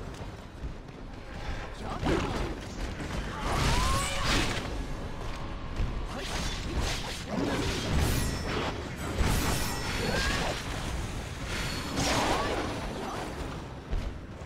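A sword slashes and clangs against flesh.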